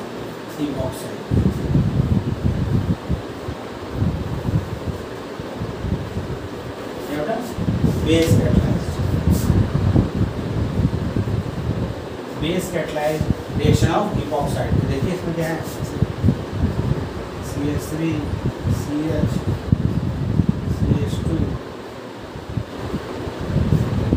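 A man lectures calmly, close by.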